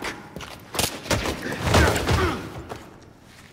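A body thuds onto a stone floor.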